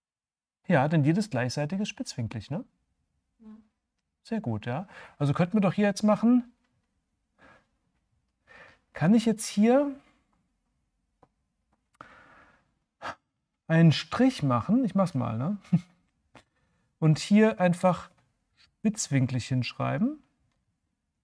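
A man speaks calmly and closely into a microphone, in bursts with pauses.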